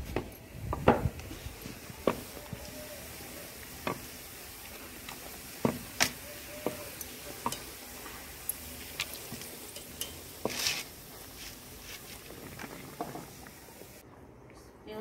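Oil sizzles as breads fry in a pan.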